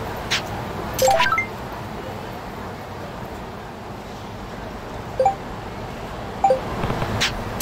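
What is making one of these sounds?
A phone chimes with a new message.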